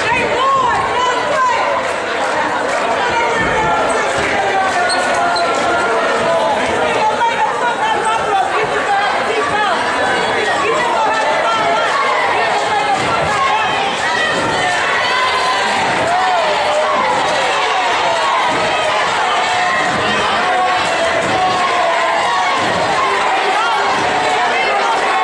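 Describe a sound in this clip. A crowd of spectators chatters and cheers loudly in an echoing gym.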